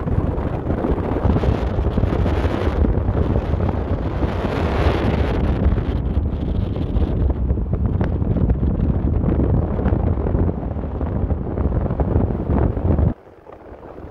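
Wind roars loudly past a moving car.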